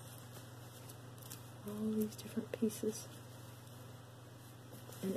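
A fine metal chain clinks softly as it is handled.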